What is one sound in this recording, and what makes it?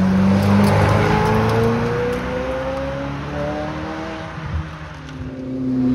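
A supercar engine roars as it accelerates up a hill.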